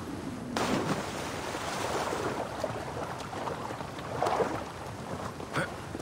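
Water sloshes with swimming strokes.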